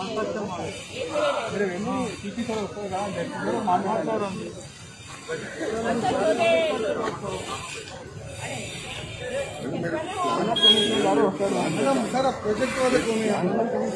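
Several men argue loudly and with agitation nearby.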